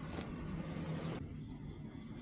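Leafy grass brushes and rustles close by.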